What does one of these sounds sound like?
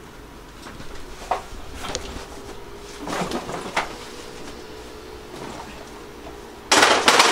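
Bodies scuffle and thump in a struggle nearby.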